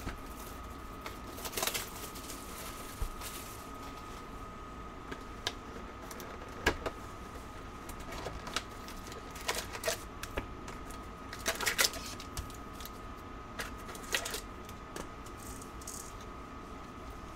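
Cardboard packs and cards rustle and tap as hands handle them.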